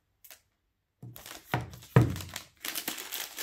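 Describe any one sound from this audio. Plastic wrapping crinkles and rustles as it is peeled off.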